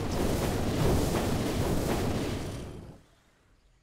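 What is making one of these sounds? A fiery magic blast roars and crackles.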